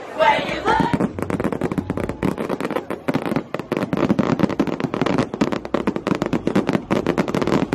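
Fireworks crackle and pop in rapid bursts outdoors.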